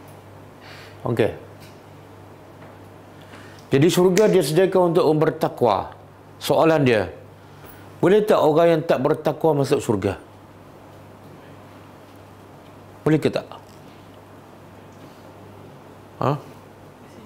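A middle-aged man speaks with emphasis into a close microphone, in short bursts with pauses.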